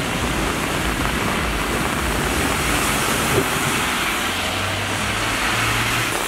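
A van drives through deep water with a loud splash.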